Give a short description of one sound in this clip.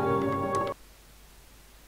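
Cheerful game music plays and suddenly cuts off.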